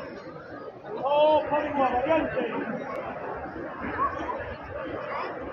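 A large crowd chatters and calls out nearby outdoors.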